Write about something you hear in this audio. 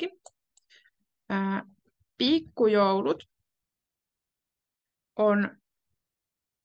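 A young woman speaks slowly and clearly over an online call, with pauses.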